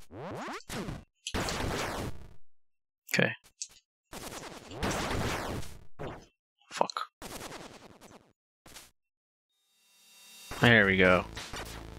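Retro electronic game effects zap, whoosh and crash in quick bursts.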